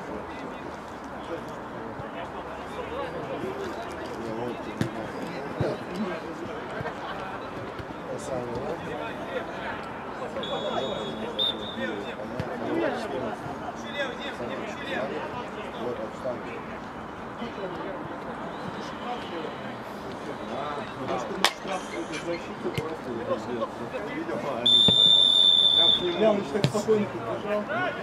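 Men shout and call out across an open pitch outdoors.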